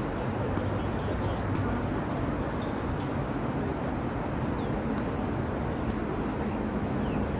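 Traffic rumbles steadily on a nearby overpass.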